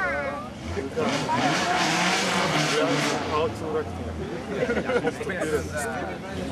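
A car engine roars as a rally car approaches and pulls up.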